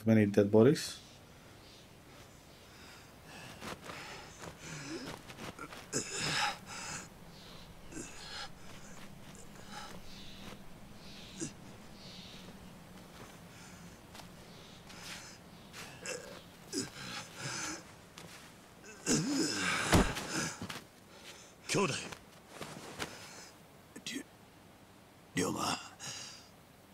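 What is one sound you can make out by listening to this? A man talks calmly into a close microphone.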